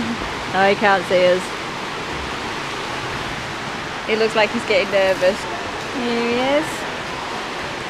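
A woman speaks calmly close to the microphone.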